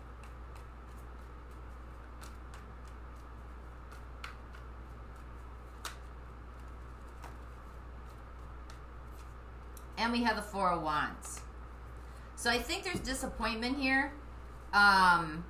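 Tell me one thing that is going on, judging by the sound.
Playing cards riffle and tap softly as they are shuffled.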